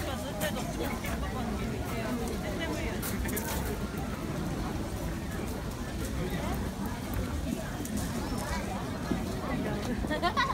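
A large crowd of men and women chatters close by, outdoors.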